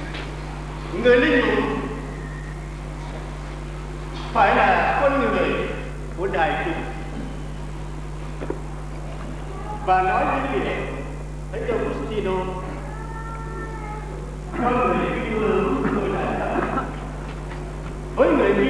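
A man speaks slowly and calmly through a microphone in a large echoing hall.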